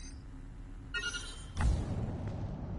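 A menu beeps with a short click.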